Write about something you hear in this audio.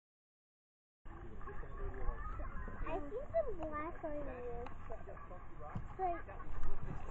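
Young children talk and exclaim close by, outdoors.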